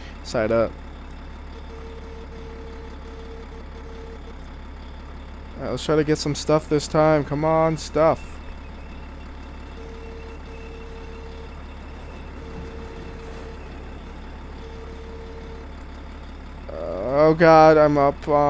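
A wheel loader's diesel engine hums steadily.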